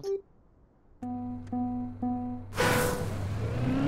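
Three countdown beeps sound, followed by a higher start tone.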